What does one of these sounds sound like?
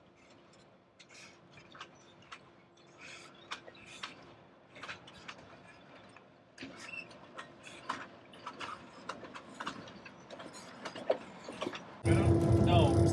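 A train rumbles along in the distance across water.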